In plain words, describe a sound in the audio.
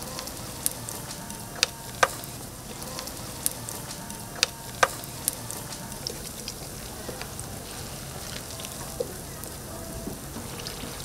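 Batter sizzles and hisses in hot oil.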